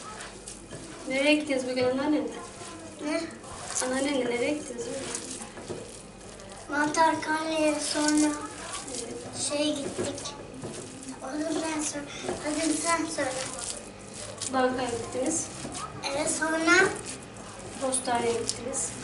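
A woman talks calmly and close by.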